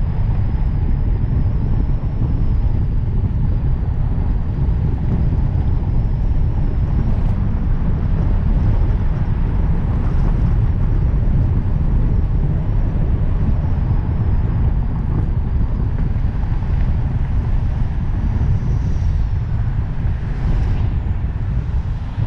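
Wind buffets loudly against a microphone on a moving car.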